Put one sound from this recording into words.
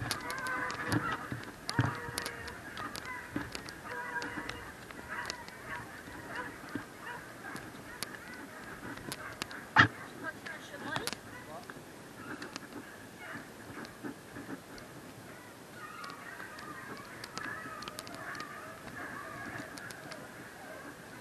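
Dry twigs snap underfoot.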